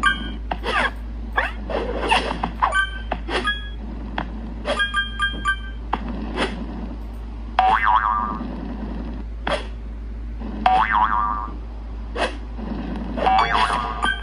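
A mobile game plays cheerful sound effects and jingles.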